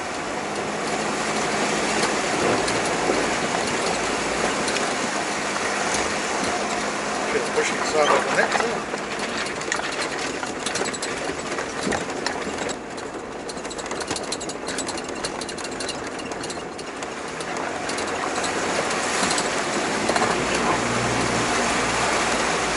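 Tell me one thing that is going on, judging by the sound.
A car engine hums steadily close by.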